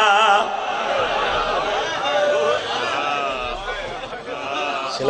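A man recites loudly and passionately into a microphone, heard through loudspeakers.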